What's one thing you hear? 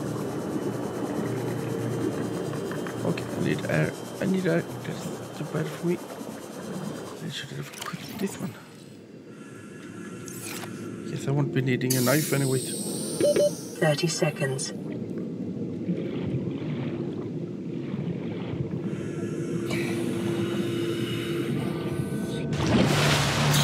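Water swirls and bubbles in a muffled way.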